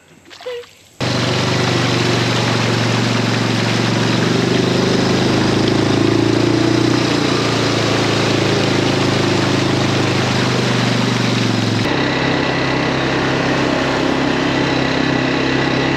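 An engine drones steadily while a vehicle rides along.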